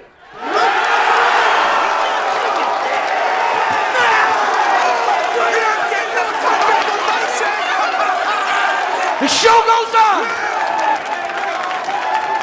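A large crowd of men and women cheers and shouts loudly.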